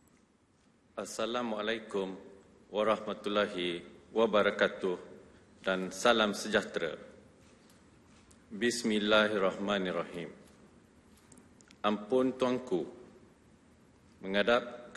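A man reads out solemnly into a microphone, in a large echoing hall.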